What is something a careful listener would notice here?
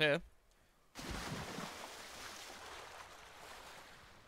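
Water sloshes as someone wades.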